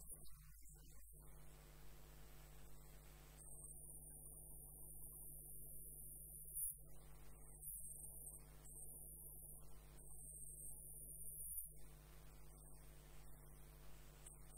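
A hollowing tool scrapes inside spinning wood.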